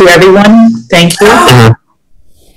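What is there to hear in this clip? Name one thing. Another middle-aged woman speaks with animation over an online call.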